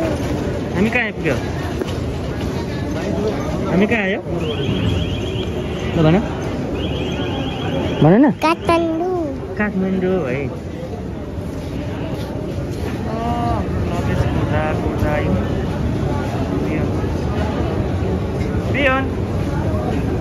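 A young child babbles and squeals close by.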